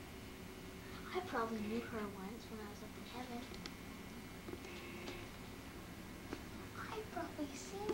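A young boy talks quietly close by.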